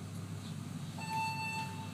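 An elevator chime rings once.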